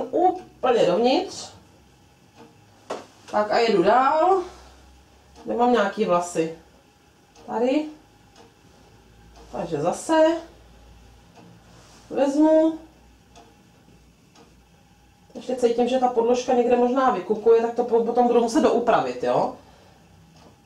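A young woman speaks calmly and close by, in short phrases with pauses.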